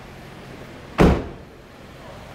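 A car door slams shut with a loud thud.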